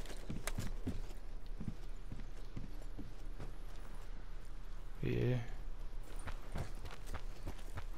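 Footsteps thud quickly across hard ground.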